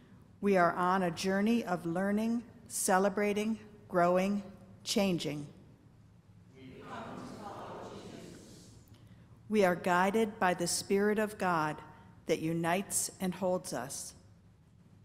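A man reads out through a microphone.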